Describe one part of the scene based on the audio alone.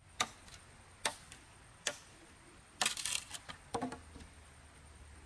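A machete chops into bamboo with sharp knocks.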